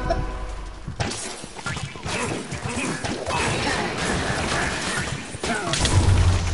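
Weapons swish and strike in a fast fight.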